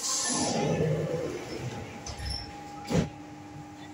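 Subway doors slide shut with a thud.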